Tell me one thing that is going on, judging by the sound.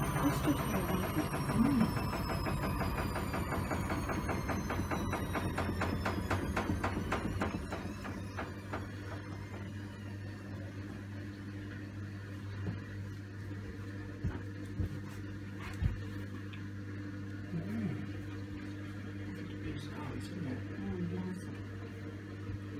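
A washing machine drum turns with a steady motor hum.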